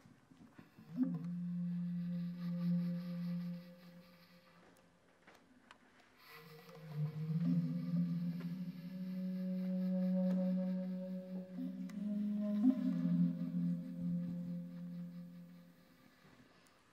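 A clarinet plays long, low, held notes.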